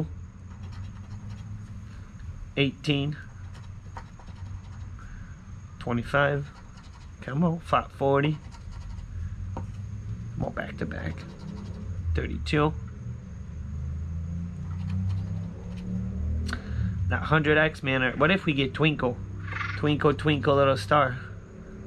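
A coin scratches against a card.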